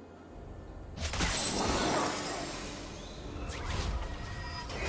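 Magic spells whoosh and burst in quick blasts.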